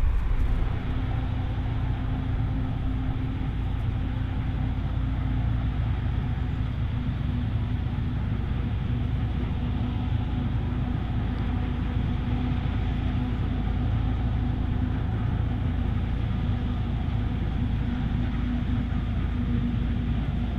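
A forage harvester roars loudly as it chops.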